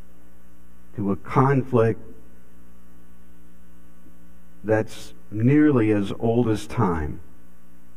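An older man speaks calmly through a microphone.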